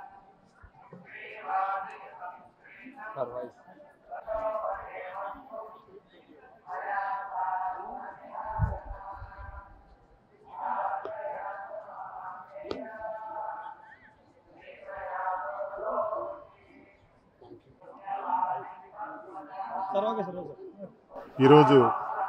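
A man speaks calmly and steadily close to a microphone.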